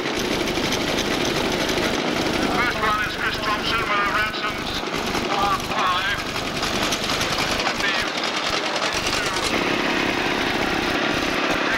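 A small petrol engine on a lawnmower runs and putters close by.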